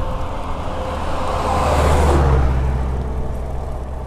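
A truck rushes past in the opposite direction.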